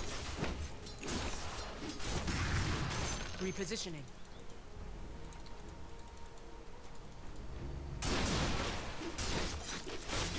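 Game spells and blows crash and whoosh in short bursts.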